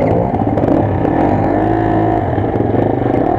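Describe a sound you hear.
Dirt bike engines rev with a rising whine.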